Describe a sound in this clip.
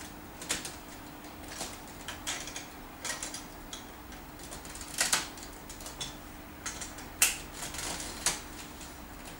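Plastic building pieces click and clack together.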